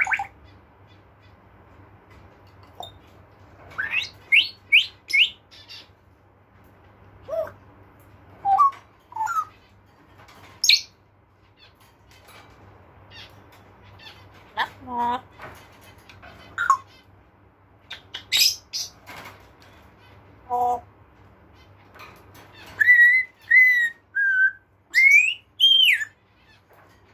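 A parrot squawks, whistles and chatters up close.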